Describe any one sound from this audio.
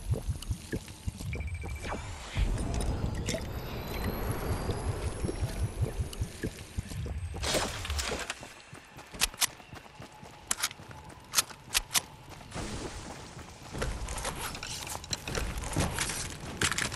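Footsteps crunch quickly through dry grass.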